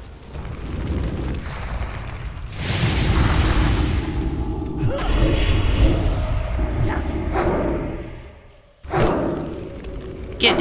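A young woman talks into a close microphone with animation.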